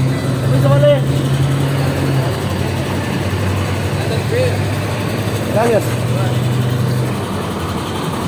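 A bus engine idles with a low, steady rumble nearby.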